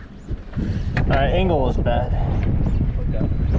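A man speaks loudly nearby over the wind.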